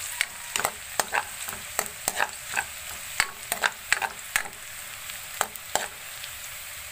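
A metal spatula scrapes and clanks against a wok.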